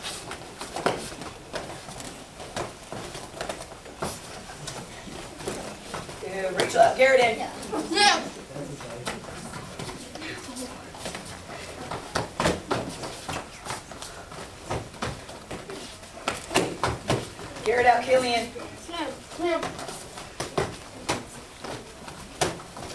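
Kicks thud sharply against padded body guards.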